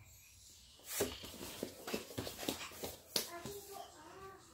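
A toddler shuffles and rustles across the floor.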